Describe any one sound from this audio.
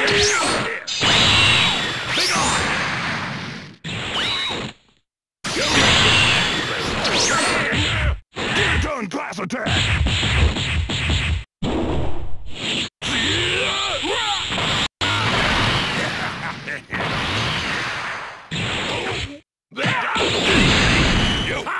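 Energy blasts burst and roar.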